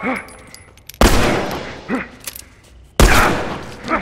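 Gunshots boom loudly and echo around a large hollow space.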